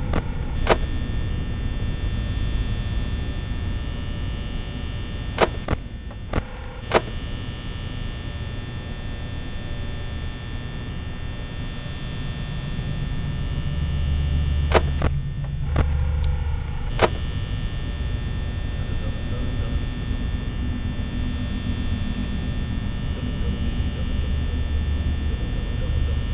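A desk fan whirs steadily.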